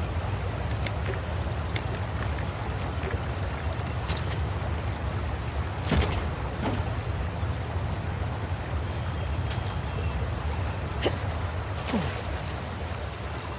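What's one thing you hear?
Rushing water churns steadily.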